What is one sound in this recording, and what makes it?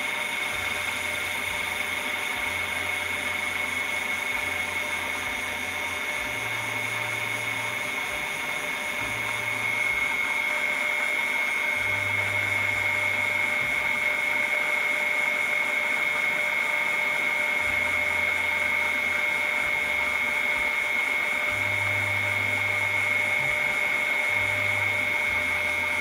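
A small motor hums steadily.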